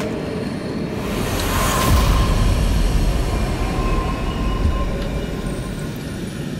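A magical burst booms with a deep rumble.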